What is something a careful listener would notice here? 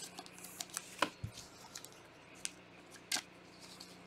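A foil wrapper crinkles as a pack is torn open.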